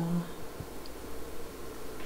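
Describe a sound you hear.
A paintbrush dabs and swirls in a paint tray.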